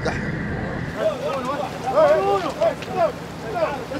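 Many people talk and call out.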